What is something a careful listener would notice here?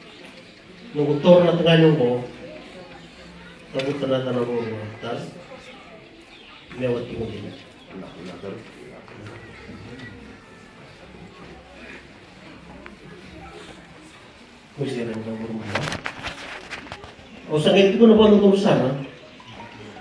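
An elderly man speaks into a microphone in bursts, heard through a loudspeaker in a room.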